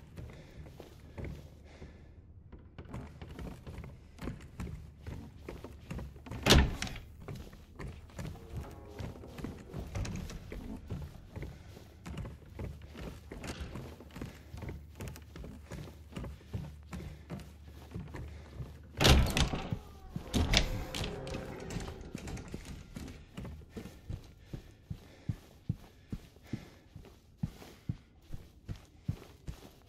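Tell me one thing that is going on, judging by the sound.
Footsteps thud steadily on a hard floor indoors.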